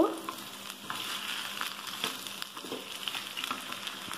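A metal spatula scrapes and stirs vegetables in a pan.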